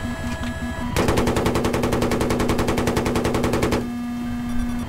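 An automatic cannon fires.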